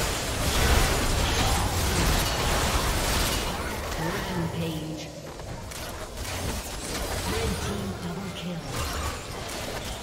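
Magic blasts and impacts crackle and burst in a fast fight.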